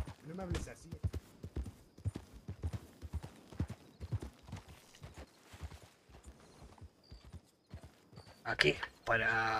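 Horse hooves clop steadily on dirt.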